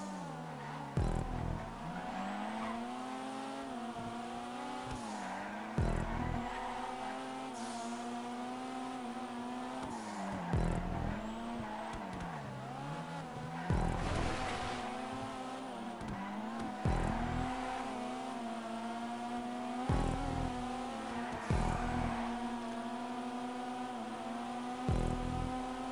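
A car gearbox thumps with each gear shift.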